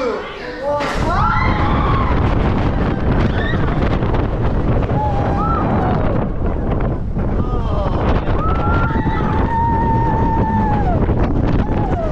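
Wind roars loudly past.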